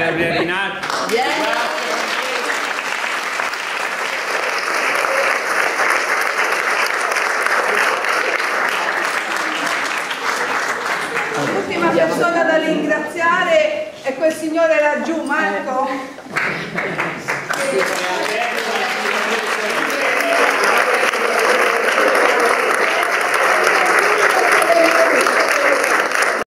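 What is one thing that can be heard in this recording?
A crowd claps and cheers in a large room.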